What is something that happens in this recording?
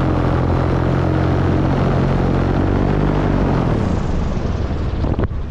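A small propeller engine drones loudly and winds down.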